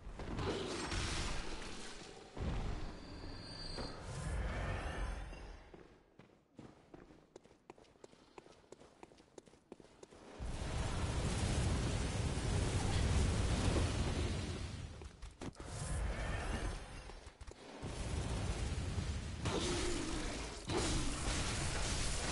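Blades slash and strike with sharp, heavy hits.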